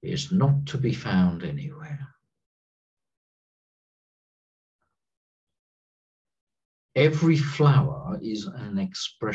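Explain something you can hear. A middle-aged man speaks calmly and slowly over an online call, with pauses.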